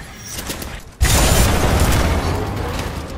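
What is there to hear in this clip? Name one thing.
An electric arc crackles and buzzes loudly.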